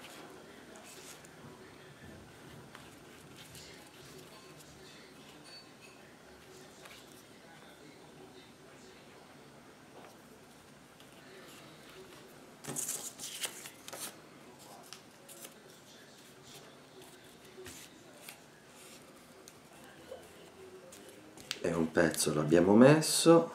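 A brush dabs and swishes softly on paper.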